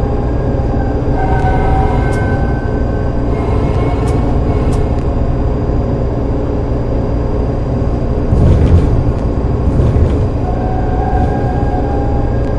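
Tram wheels squeal on curved track.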